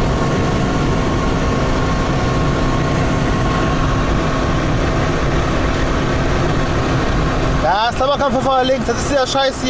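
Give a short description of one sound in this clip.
A car engine drones steadily while driving along a road.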